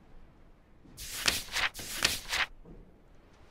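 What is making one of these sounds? Pages of a book rustle as it is opened.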